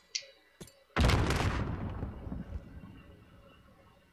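A rifle fires in a video game, with a booming echo that fades.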